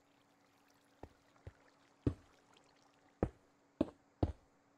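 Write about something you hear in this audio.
Stone blocks knock dully as they are set down one after another.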